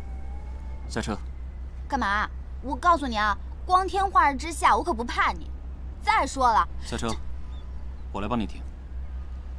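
A young woman speaks sharply and close by.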